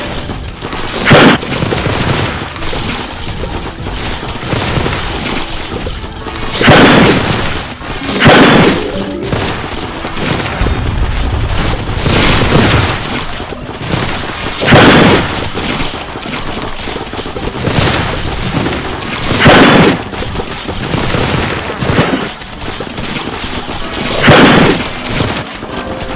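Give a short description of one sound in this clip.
Video game explosions burst one after another.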